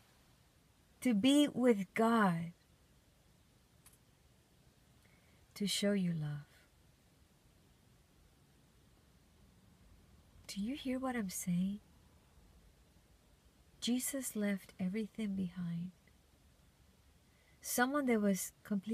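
A woman talks close by with animation, in short bursts with pauses.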